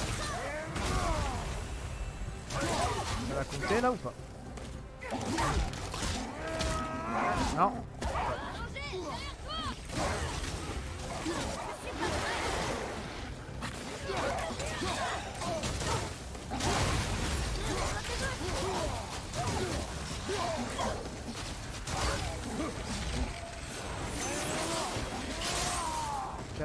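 Heavy blows and crashes of a fight land again and again.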